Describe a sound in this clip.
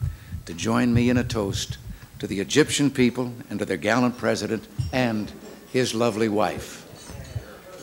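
An elderly man delivers a toast through a microphone.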